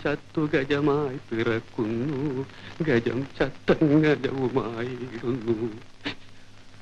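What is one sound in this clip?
A man sings in a wavering, drawn-out voice.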